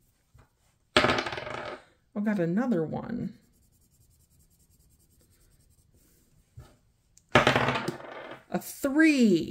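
A small die rolls and clatters across a wooden table.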